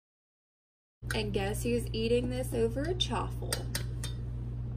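A whisk clinks against a metal bowl.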